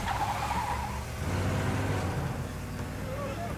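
A car engine roars down a street.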